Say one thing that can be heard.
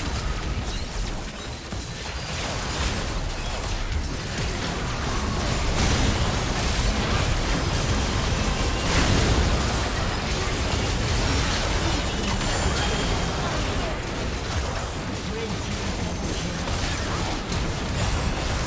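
Spells and attacks crackle, whoosh and burst in a busy video game fight.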